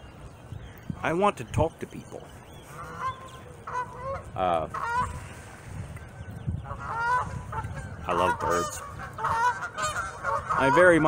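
A middle-aged man talks with animation, close by, outdoors in light wind.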